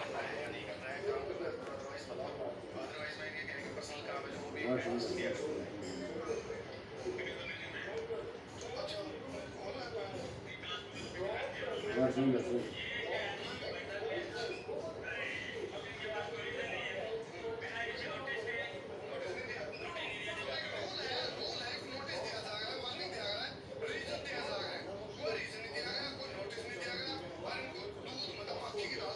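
A parrot squawks and chatters close by.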